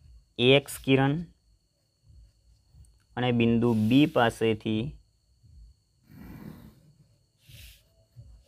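A pencil scratches lines on paper.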